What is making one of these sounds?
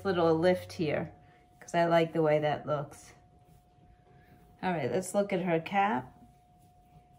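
A woman speaks clearly and close by, explaining calmly.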